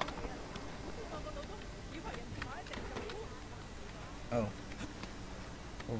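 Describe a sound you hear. A man clambers and scrapes over wooden boards.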